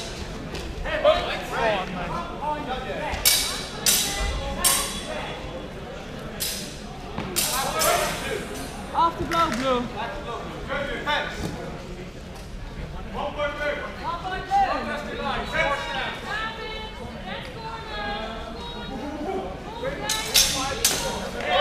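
Weapons clash and thud sharply in a large echoing hall.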